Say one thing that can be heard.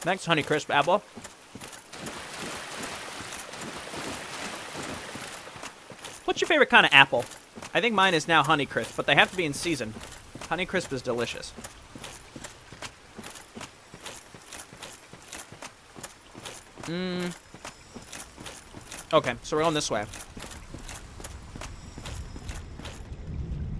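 Armored footsteps run quickly over ground and stone steps.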